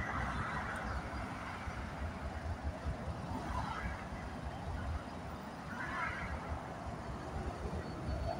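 A train's diesel engines rumble as it approaches.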